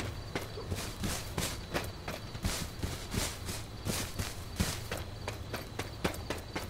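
Quick footsteps run over grass and gravel.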